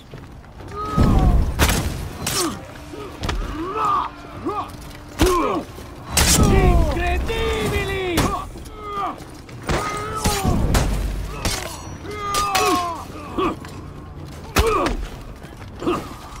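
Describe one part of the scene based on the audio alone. Metal blades clash and clang in a fight.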